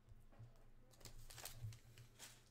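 Plastic card wrappers crinkle and rustle in hands.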